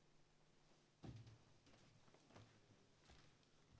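Footsteps thud softly on a wooden stage.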